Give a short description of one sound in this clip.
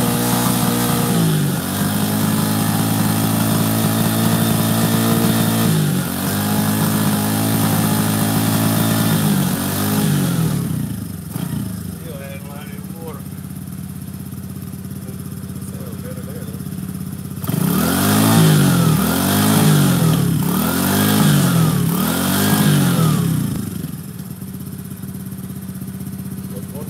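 A quad bike engine idles loudly and revs up and down close by.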